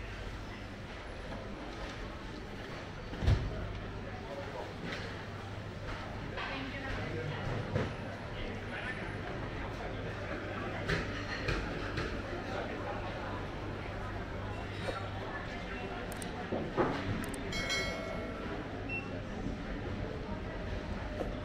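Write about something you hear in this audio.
Footsteps tap on the floor as people walk past.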